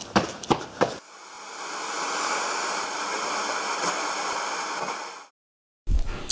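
Static hisses loudly and steadily.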